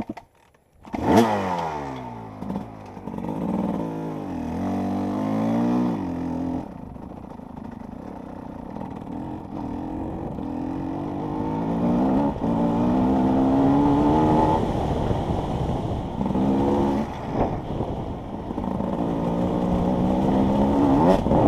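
A motorcycle engine starts up close by and revs up and down hard.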